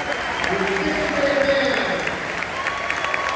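A large band plays a final chord that rings out in a big echoing hall.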